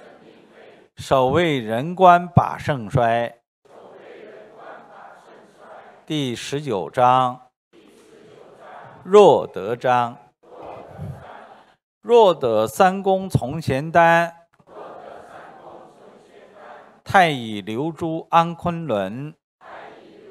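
A middle-aged man reads out calmly into a microphone, in bursts with pauses.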